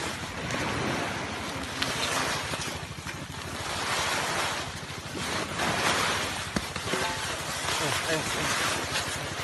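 Cloth sacking rustles close by.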